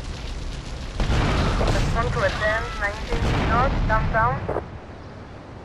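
A car explodes with a loud, rumbling blast.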